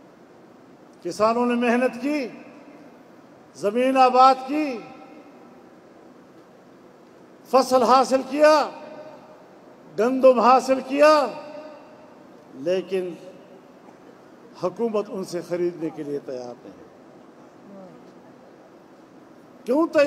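An elderly man speaks forcefully into a microphone over loudspeakers, in short bursts with pauses.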